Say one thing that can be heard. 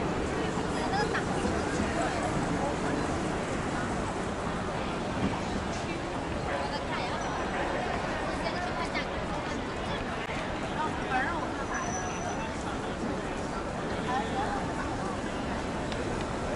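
A crowd of people chatters outdoors in a busy open space.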